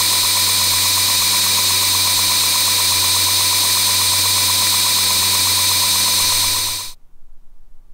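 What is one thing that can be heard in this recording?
A belt sander whirs loudly.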